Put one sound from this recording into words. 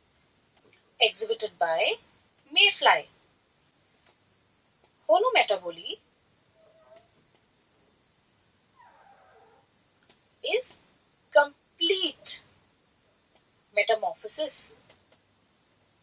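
A young woman speaks calmly into a close microphone, in short phrases with pauses.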